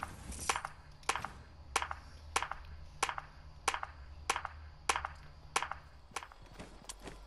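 Footsteps thud on a wooden floor at an even pace.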